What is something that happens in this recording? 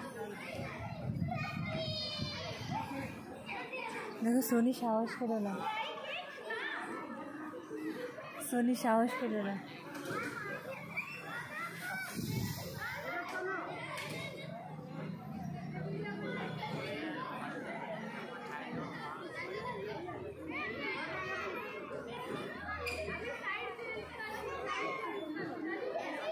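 Children shout and chatter outdoors at play.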